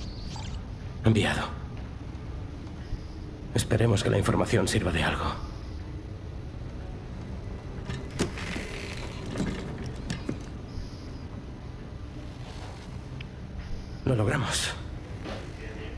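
A young man speaks calmly and briefly, close by.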